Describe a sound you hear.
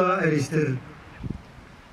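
A man chants a prayer through a microphone and loudspeaker outdoors.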